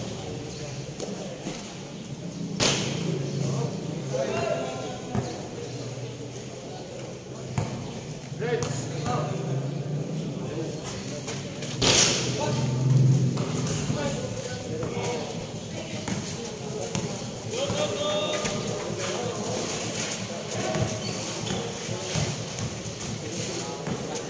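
A crowd of spectators chatters and shouts nearby.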